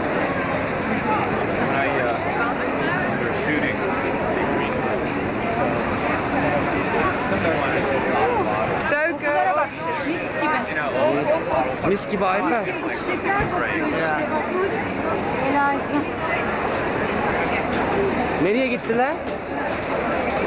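A large crowd chatters and murmurs all around outdoors.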